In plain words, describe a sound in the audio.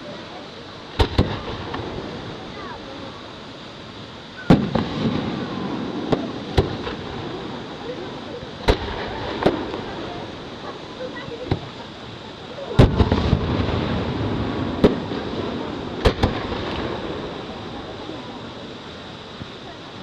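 Fireworks crackle and rumble after each burst.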